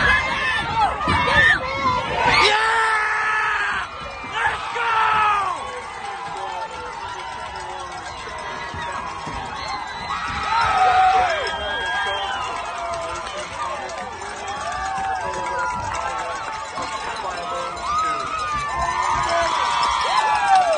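A man shouts with excitement nearby.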